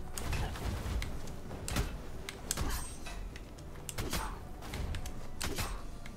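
Sword slashes and game hit effects whoosh and crack in quick bursts.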